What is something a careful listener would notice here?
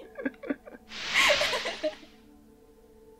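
A young woman laughs through a microphone.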